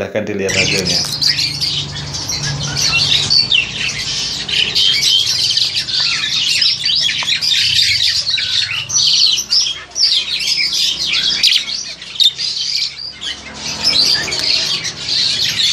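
Black-collared starlings chatter and whistle at close range.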